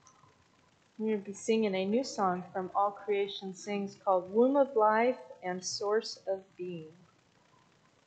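A woman speaks clearly through a microphone in an echoing hall.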